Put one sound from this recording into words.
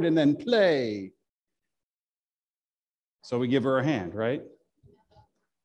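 A middle-aged man speaks with animation close by, in a reverberant hall.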